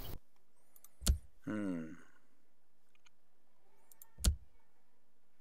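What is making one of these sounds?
A menu selection clicks sharply.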